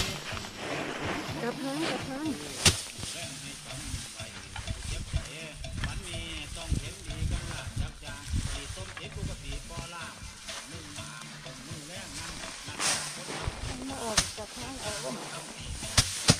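Dry straw rustles and swishes.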